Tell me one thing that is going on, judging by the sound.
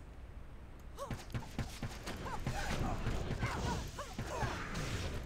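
Magic spells burst and crackle in quick succession.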